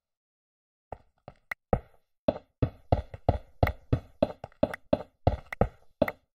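Blocks of stone are set down with short, dull knocks.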